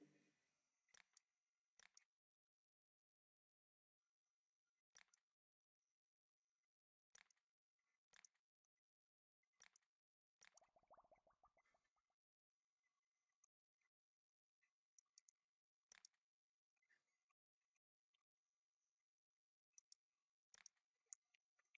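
Soft game menu clicks sound now and then.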